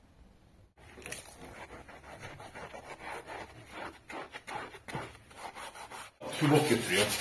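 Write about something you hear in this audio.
A sponge scrubs a surface with soft squeaking strokes.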